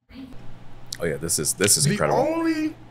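A man exclaims loudly with delight.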